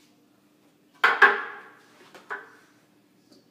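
A plastic tray knocks and clatters against a sink.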